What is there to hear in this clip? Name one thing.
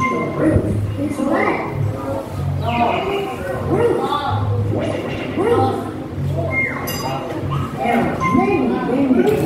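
A young woman speaks clearly to a class.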